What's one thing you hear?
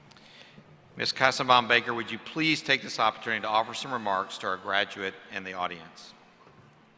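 A middle-aged man reads out through a microphone and loudspeakers in a large hall.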